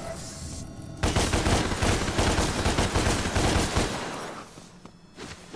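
A loud rushing roar surges and then fades.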